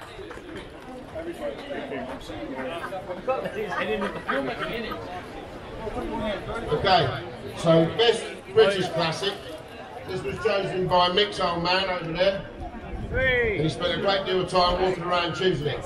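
A man speaks loudly to a gathered crowd.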